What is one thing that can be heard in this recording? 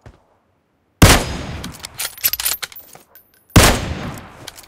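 A rifle fires two loud shots that echo away.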